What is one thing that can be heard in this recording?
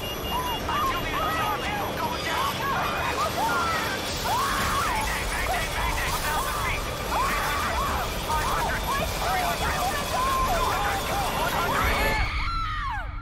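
A woman cries out in panic.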